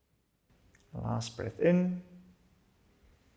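A man speaks softly and calmly nearby.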